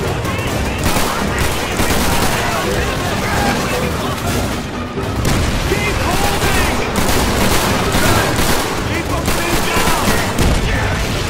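Gunfire and explosions rumble on in the distance.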